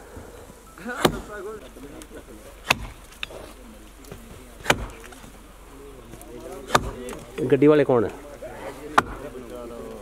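An axe chops into the wood of a fallen tree outdoors.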